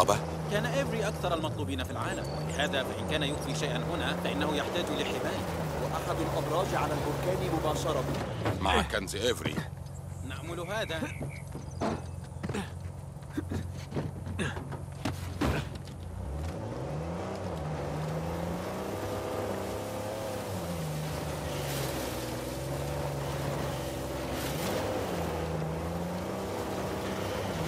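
A jeep engine revs and drops in pitch as it drives over rough ground.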